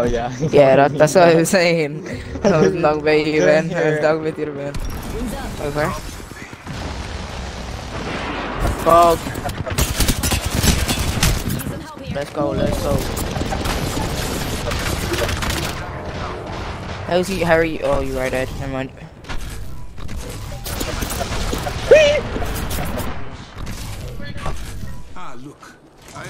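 A young man talks excitedly through a microphone.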